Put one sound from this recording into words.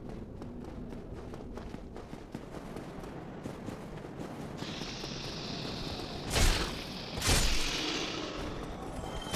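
Armoured footsteps clink softly on stone.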